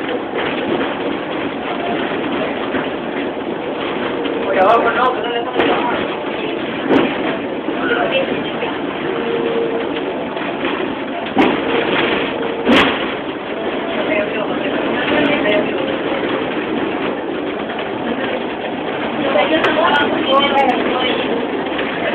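A tram rumbles and rattles along its rails.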